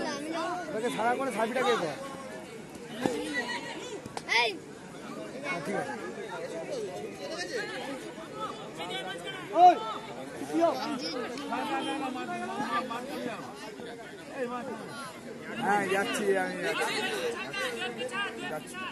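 A crowd of young men cheers and shouts outdoors.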